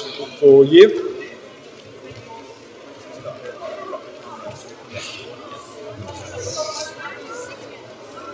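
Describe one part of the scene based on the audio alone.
Children chatter and murmur in a large echoing hall.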